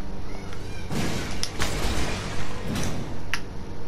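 Clay pots shatter with a loud crash.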